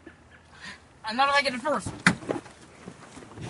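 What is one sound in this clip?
A young boy speaks excitedly close by.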